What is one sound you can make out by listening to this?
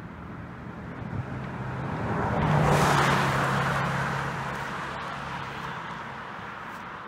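A car drives past on the road, rising and then fading.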